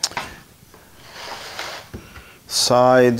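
A hand slides across a wooden board.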